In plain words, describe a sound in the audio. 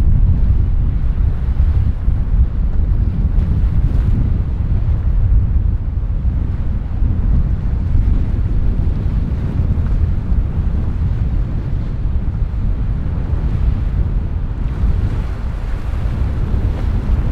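Water rushes and splashes along a boat's hull.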